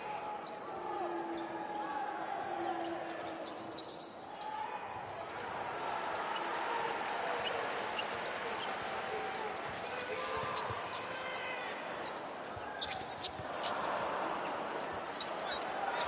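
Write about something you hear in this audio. A crowd murmurs and cheers throughout a large echoing arena.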